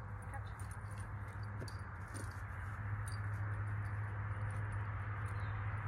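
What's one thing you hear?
A dog runs across grass.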